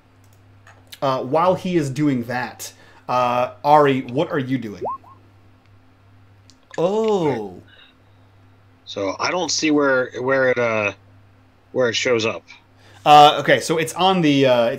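A man speaks with animation through a headset microphone over an online call.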